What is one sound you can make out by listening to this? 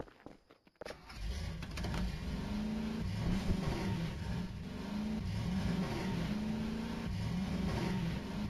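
A motorbike engine rumbles and revs, rising and falling in pitch.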